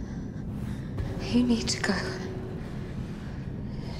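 A young woman speaks quietly and fearfully, close by.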